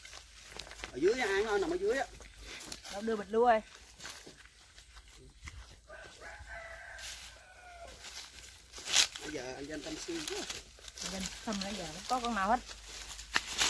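A boy speaks close by with animation.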